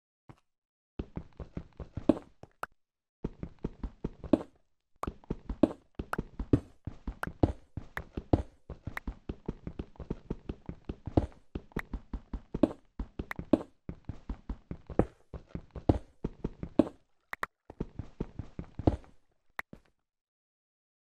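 A pickaxe chips rapidly at stone blocks, with blocks cracking loose.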